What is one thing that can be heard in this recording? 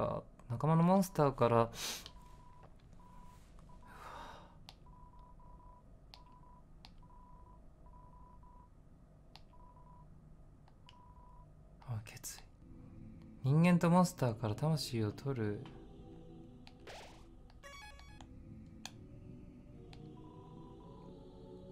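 Short electronic beeps tick in quick succession as game text types out.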